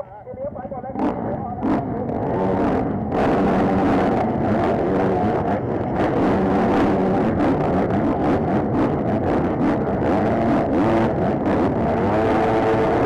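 Many dirt bike engines roar loudly together at full throttle.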